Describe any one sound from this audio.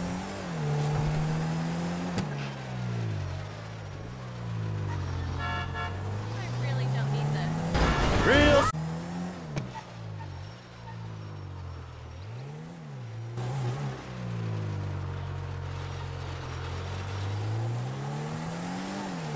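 A car engine revs up and down over and over.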